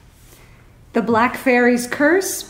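A younger woman speaks into a microphone.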